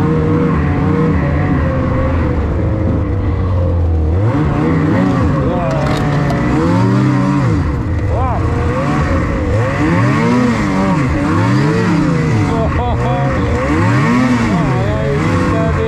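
A snowmobile engine roars loudly, rising and falling in pitch as the throttle changes.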